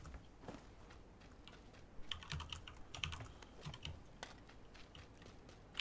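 Footsteps run over grass and gravel.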